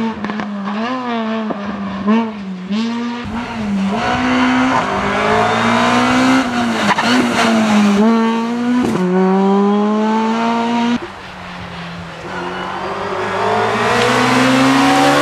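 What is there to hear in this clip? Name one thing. A rally car engine revs hard, rising and dropping in pitch as it shifts gears.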